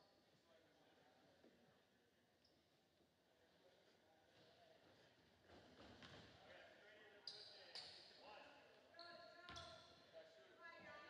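Spectators murmur and chatter in a large echoing gym.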